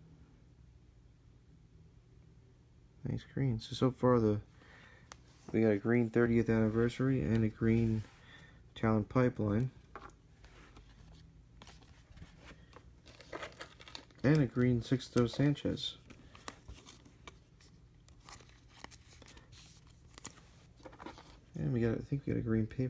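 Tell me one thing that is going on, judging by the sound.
Trading cards rustle and slide against each other in hands.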